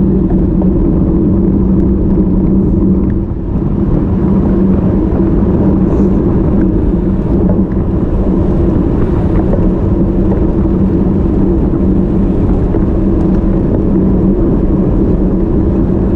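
Bicycle tyres hum steadily on the road.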